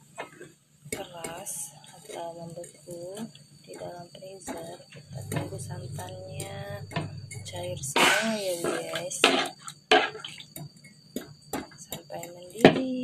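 A metal spoon scrapes and stirs inside a wok.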